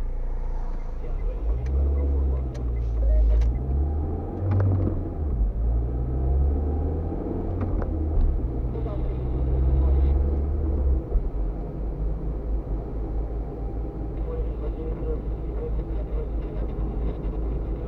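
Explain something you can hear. A car engine hums and revs as the car pulls away.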